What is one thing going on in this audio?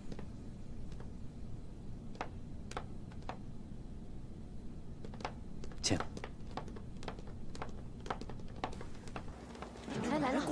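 Footsteps click on a hard floor.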